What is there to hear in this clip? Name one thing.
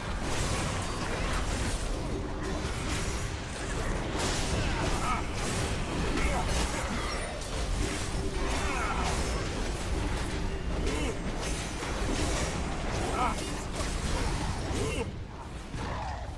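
Spells crackle and whoosh in a busy fantasy battle.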